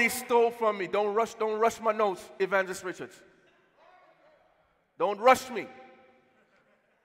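A man sings loudly with fervour through a microphone in a large echoing hall.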